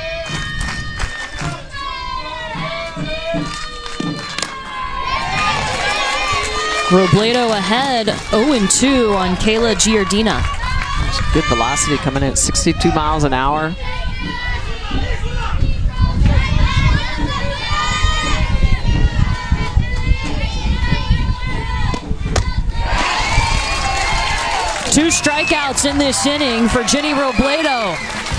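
A crowd of spectators cheers and chants loudly outdoors.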